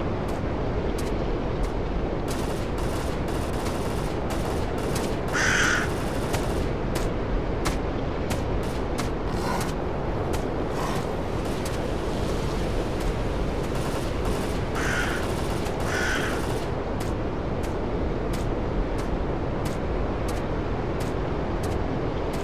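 Wind blows steadily through the trees outdoors.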